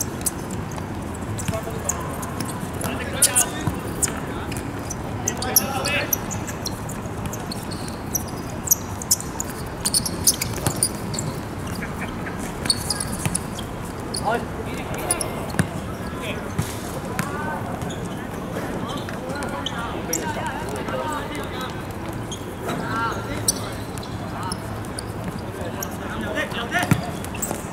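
A football is kicked on an outdoor pitch.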